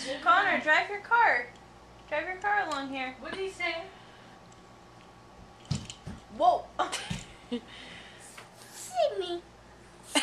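A toddler boy babbles and laughs.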